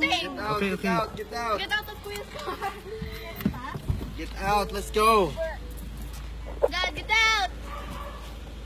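Young men talk and laugh loudly nearby.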